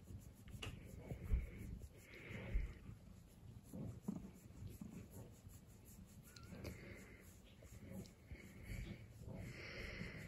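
Fingers rub and rustle through a cat's fur.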